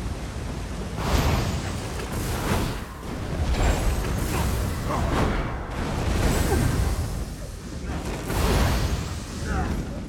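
Magic spells crackle and burst in loud blasts.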